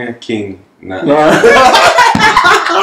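A second man laughs loudly close by.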